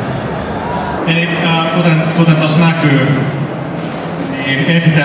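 A young man speaks loudly into a microphone through loudspeakers.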